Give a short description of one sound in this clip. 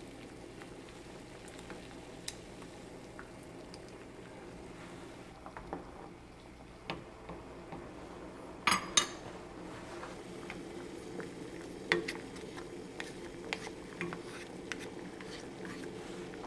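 Water bubbles and simmers in a pot.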